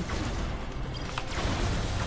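A laser gun fires in a short burst.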